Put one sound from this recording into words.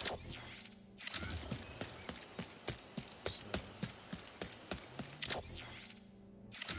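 Quick footsteps patter on soft grass.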